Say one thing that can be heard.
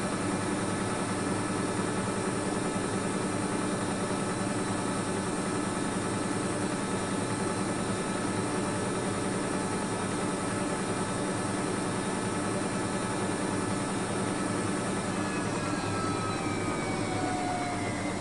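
Water sloshes inside a washing machine drum.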